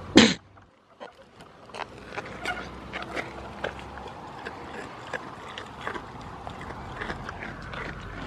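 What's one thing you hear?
A goat crunches and chews on a cucumber close by.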